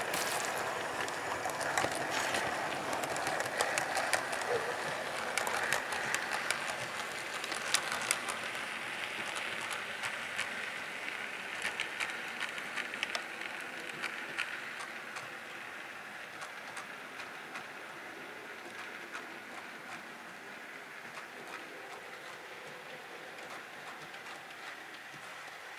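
A model train rumbles and whirs along its track, passing close and then fading into the distance.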